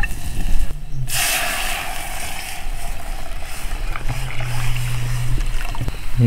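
Water splashes as it is poured into a pot.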